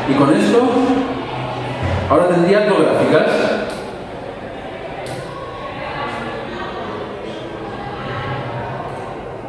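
A man lectures through a microphone in a large echoing room.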